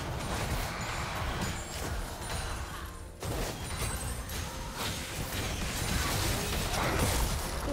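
Video game spell effects crackle and whoosh during a battle.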